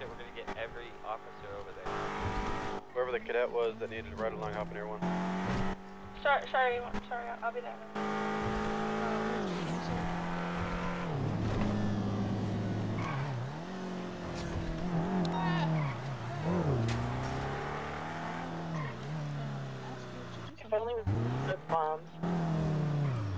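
A car engine hums steadily and revs up and down as it drives.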